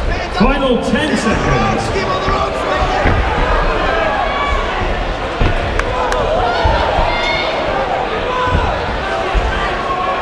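Boxing gloves thud against a boxer's body.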